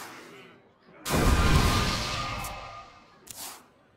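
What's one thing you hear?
A card game plays a bright magical whoosh with a shimmering chime.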